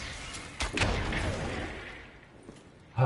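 A video game gun fires with a loud crackling blast.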